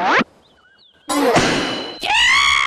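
A cartoon metal trap snaps shut.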